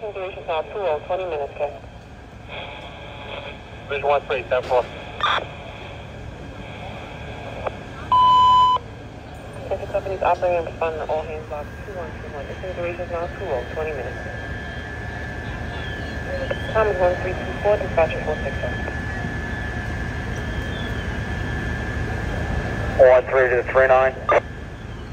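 A fire engine's engine hums steadily nearby.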